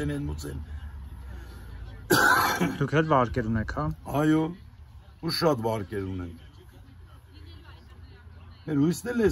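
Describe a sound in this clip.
An elderly man speaks calmly close by, outdoors.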